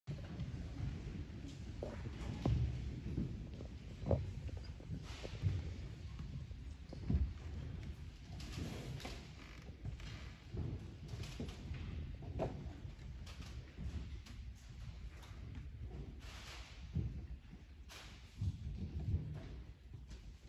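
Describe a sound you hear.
A concert band plays in a large echoing hall.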